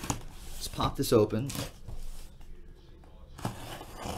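A blade slices through packing tape on a cardboard box.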